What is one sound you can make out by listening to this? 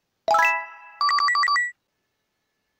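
A quick run of cheerful electronic notes plays.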